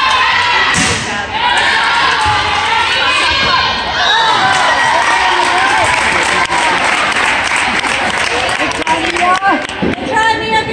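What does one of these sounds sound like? A volleyball is struck with a sharp smack.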